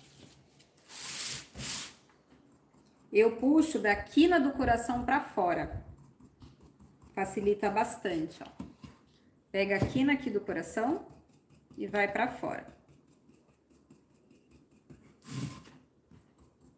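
A paintbrush swishes across a board.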